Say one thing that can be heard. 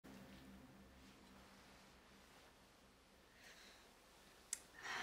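A woman sips soup from a spoon with a soft slurp.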